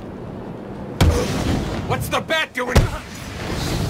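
Heavy punches and kicks land with thuds.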